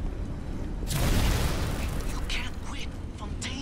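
Flames roar in a sudden burst and hiss away.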